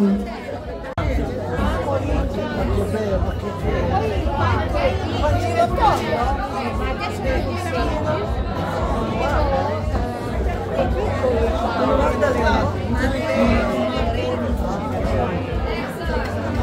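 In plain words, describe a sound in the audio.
Lively folk music plays loudly over a loudspeaker with a steady thumping beat.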